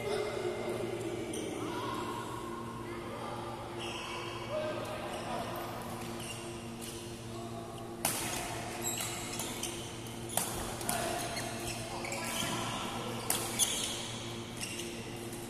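Voices of several people chatter in a large echoing hall.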